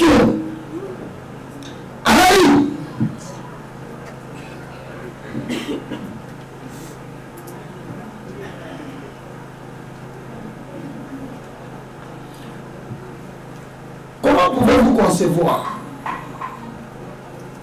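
A man speaks into a microphone in short bursts, with long pauses between.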